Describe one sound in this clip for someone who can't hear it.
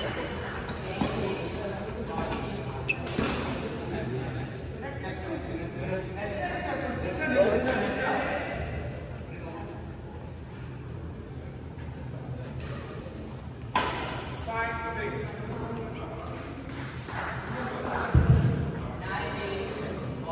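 Shuttlecocks are hit with badminton rackets, with sharp pops echoing in a large hall.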